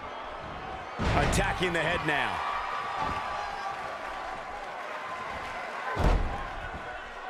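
A body slams heavily onto a wrestling mat.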